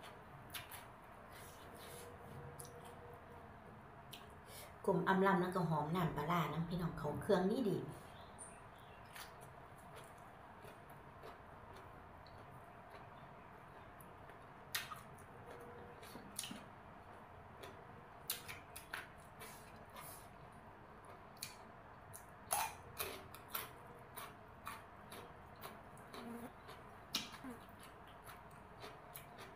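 A woman chews and crunches food loudly close to a microphone.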